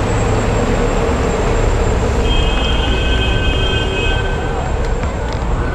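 City traffic hums in the distance.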